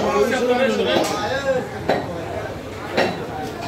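A knife chops into meat on a wooden block with sharp thuds.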